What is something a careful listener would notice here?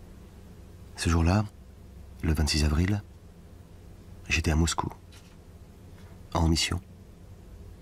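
A middle-aged man speaks calmly in short phrases with pauses in between.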